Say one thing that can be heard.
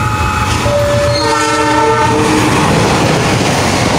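A train rumbles past along the tracks, wheels clattering.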